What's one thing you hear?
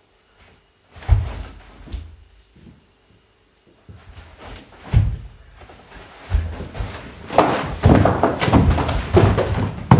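Feet stamp and thump on a wooden floor.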